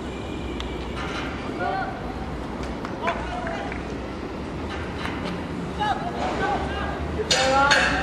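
Young men shout to each other from across an open outdoor field.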